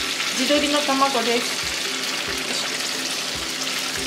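An egg cracks and drops into a sizzling pan.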